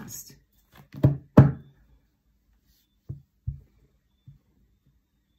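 Cards are shuffled and tapped together in a young woman's hands.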